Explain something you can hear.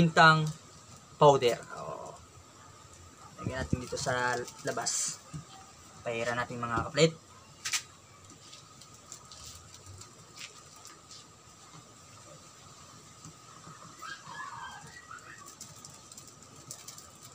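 Plastic crinkles as it is pulled off raw meat.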